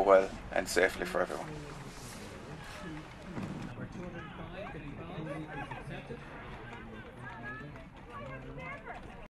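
Men and women chat together outdoors.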